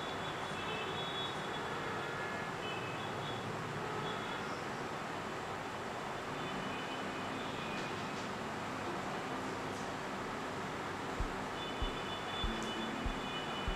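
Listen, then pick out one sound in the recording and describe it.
A spoon stirs and clinks against a glass bowl.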